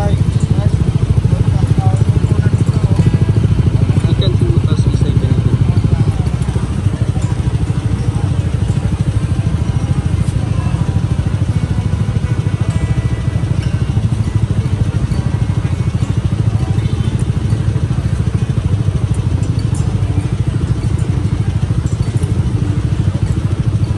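Motorcycle engines idle with a steady low rumble close by.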